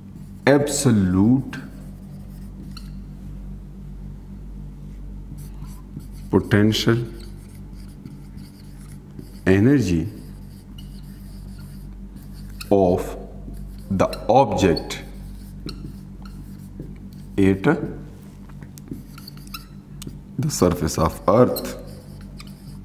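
A man speaks calmly in short bursts, close by.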